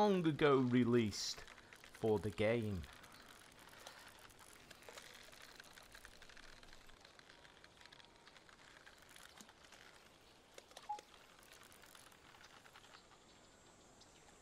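A hooked fish splashes and thrashes at the water's surface.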